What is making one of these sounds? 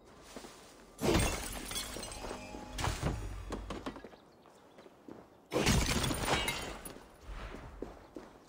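Rocks crack and shatter with heavy crunching blows.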